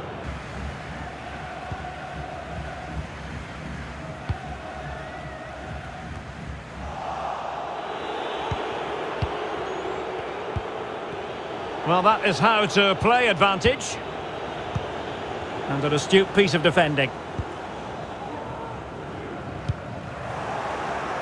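A football is kicked on a grass pitch.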